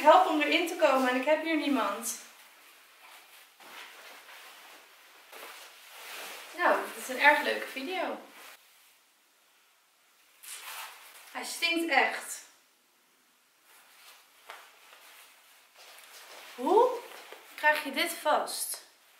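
Stiff fabric rustles as a dress is handled.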